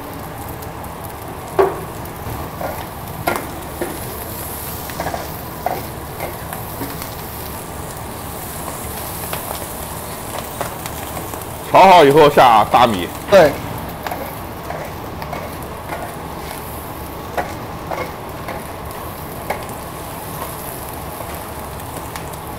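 Food sizzles steadily in a hot wok.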